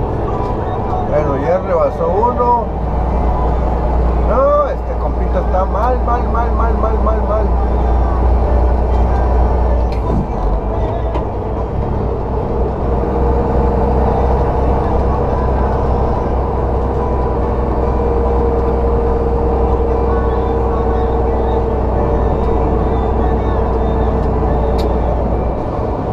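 A truck engine drones steadily at low pitch.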